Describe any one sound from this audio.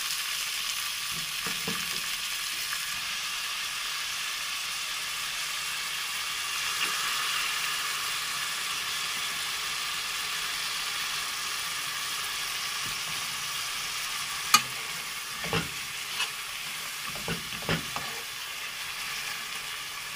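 Food sizzles steadily in a pot.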